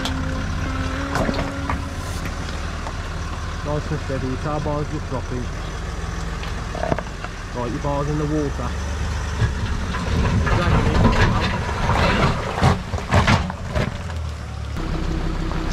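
A vehicle's engine rumbles low as it crawls slowly over rocks.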